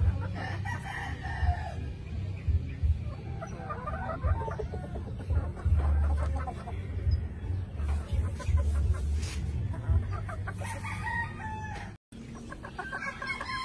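Chickens cluck and call close by.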